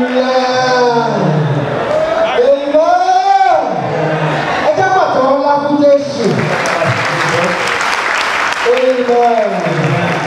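People clap their hands along.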